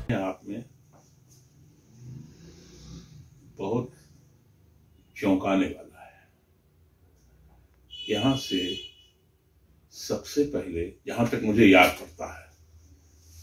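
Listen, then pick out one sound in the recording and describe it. An elderly man speaks slowly and earnestly, close by, in short bursts with pauses.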